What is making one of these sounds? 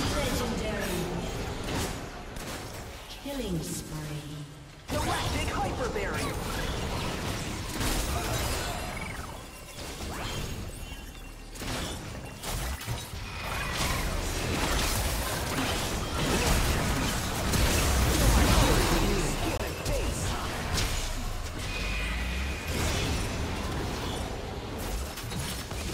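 Magic blasts, whooshes and impacts burst in quick succession in a video game fight.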